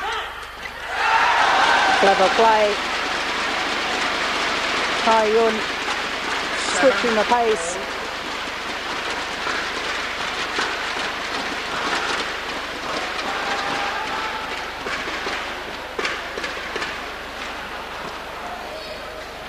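A large crowd cheers and applauds in an echoing hall.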